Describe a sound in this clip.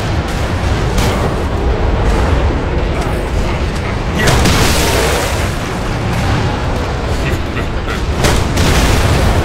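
A heavy blade slashes and strikes flesh with wet thuds.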